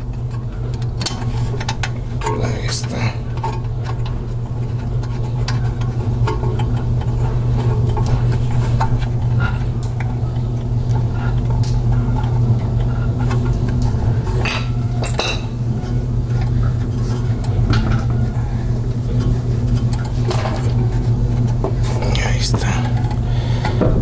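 Metal parts clink and scrape as hands work on a brake caliper.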